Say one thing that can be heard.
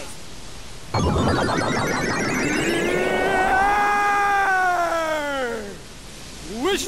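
A magical shimmering whoosh swells and fades.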